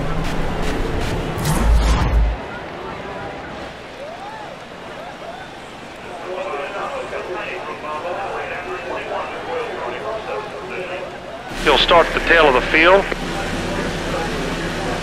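Race car engines roar at high speed.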